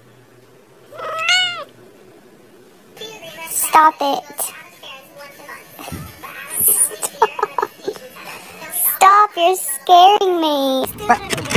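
A cat meows loudly up close.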